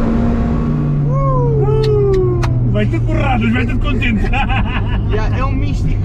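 A man laughs loudly and excitedly close by.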